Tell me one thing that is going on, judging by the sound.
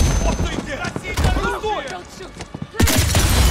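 A man speaks tensely.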